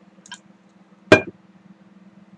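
A metal cup knocks down onto a hard table.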